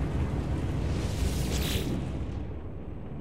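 A soft electronic whoosh sounds as a menu opens.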